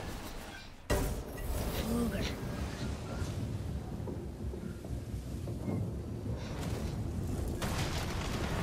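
A magical burst rushes and shimmers with a steady roar.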